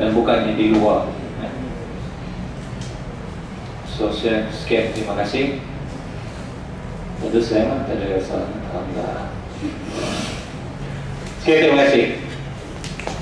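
A man speaks calmly into a microphone in a room, with pauses between phrases.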